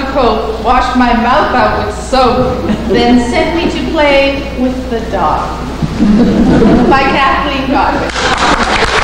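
A woman reads out through a microphone in a large room.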